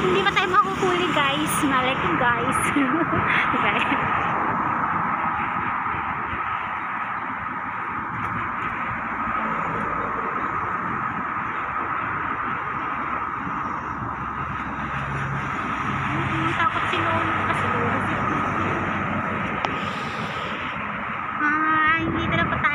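Cars and motorbikes drive past on a nearby road.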